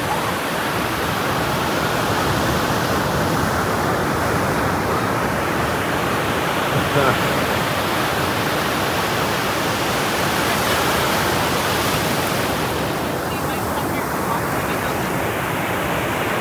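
Children splash through the shallow water.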